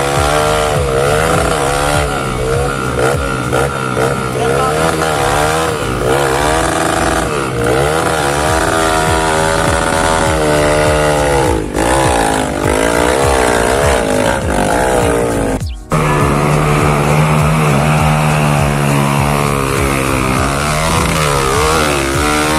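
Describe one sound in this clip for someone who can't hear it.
A dirt bike engine revs hard and strains up a steep slope.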